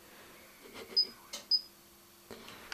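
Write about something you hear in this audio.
Buttons on a control panel beep as a finger presses them.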